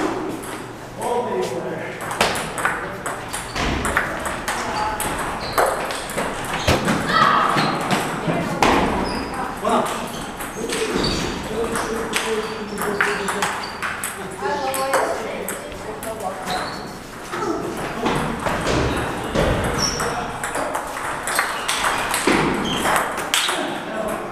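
A ping-pong ball clicks quickly back and forth on paddles and a table.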